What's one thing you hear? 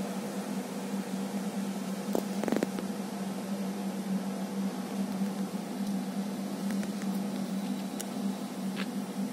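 Small icy pellets tick and patter softly on the ground.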